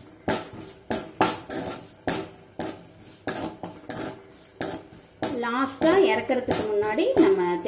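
A metal spoon scrapes and knocks against a pan.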